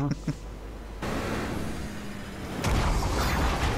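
Rocket boosters blast with a loud roar.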